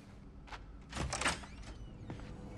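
A heavy door clicks and swings open.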